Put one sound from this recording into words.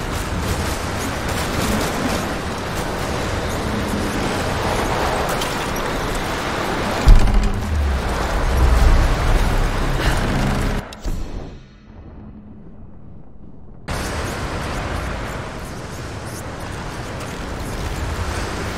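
Footsteps crunch on loose rubble.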